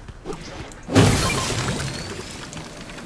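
A sudden blast bursts and hisses away.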